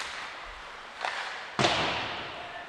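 A puck or stick cracks sharply against the boards, echoing through a large arena.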